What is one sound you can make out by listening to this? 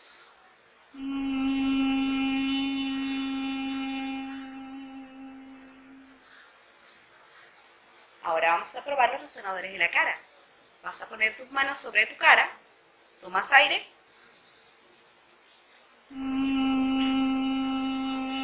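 A woman hums a long, steady note close to a microphone.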